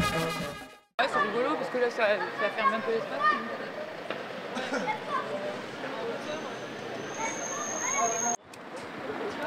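Several men and women chat casually outdoors at a distance.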